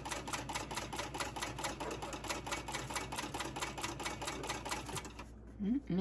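A sewing machine stitches with a fast, steady rhythmic clatter, then stops.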